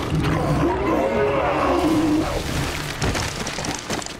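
A cartoon bear thuds onto hard ice.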